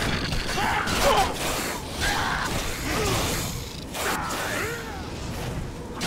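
A small creature shrieks and screeches in high, wavering cries.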